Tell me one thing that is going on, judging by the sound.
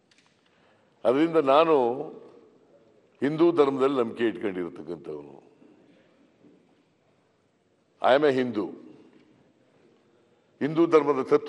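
An elderly man speaks forcefully in bursts through a microphone.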